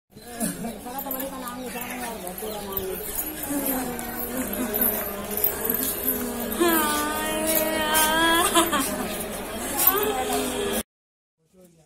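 A woman wails and cries loudly close by.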